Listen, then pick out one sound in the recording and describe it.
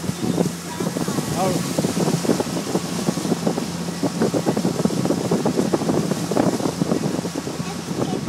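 Water splashes and rushes along the side of a boat.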